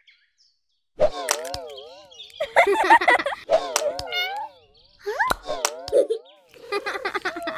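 Cartoon kittens squeak and chatter in high, playful voices.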